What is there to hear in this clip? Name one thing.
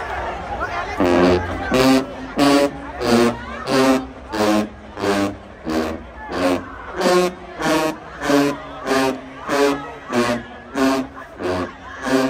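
A brass marching band plays loud punchy rhythmic blasts with drums.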